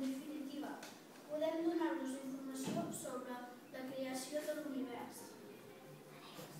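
A young boy speaks calmly, reading out.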